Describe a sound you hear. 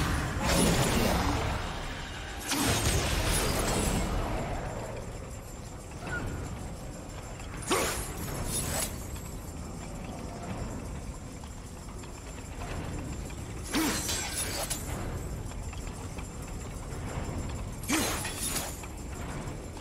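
Heavy spiked wheels rumble and grind as they roll past.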